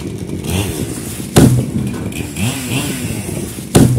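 A tree cracks and crashes heavily to the ground.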